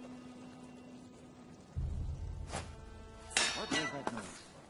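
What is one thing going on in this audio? A stone is thrown and clatters onto hard ground.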